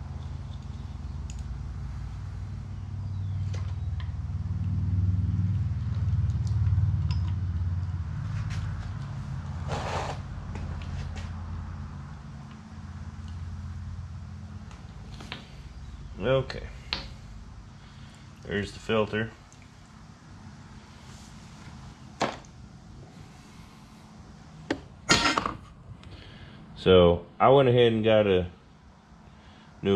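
Metal parts click and clink as a man works on an engine.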